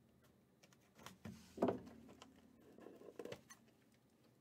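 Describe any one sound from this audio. A cardboard box slides open.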